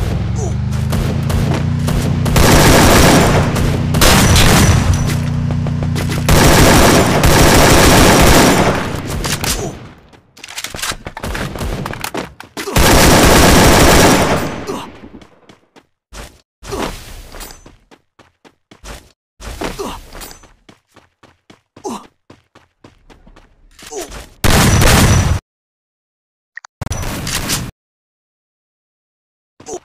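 Gunfire from a game rattles in bursts.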